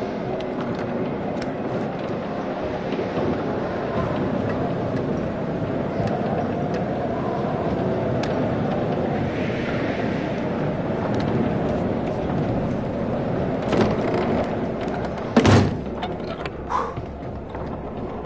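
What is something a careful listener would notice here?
Footsteps scuffle on a hard floor.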